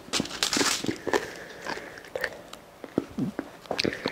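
A young girl chews food with crisp crunches close to a microphone.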